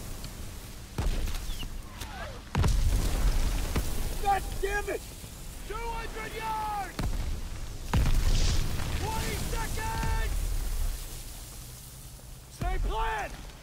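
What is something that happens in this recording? Shells explode nearby with deep, heavy booms.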